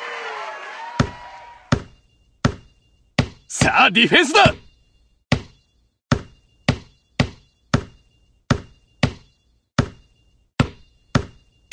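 A basketball bounces on a hard court in a steady rhythm.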